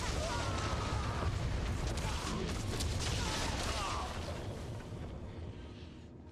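Fiery spell blasts and combat clashes burst and crackle.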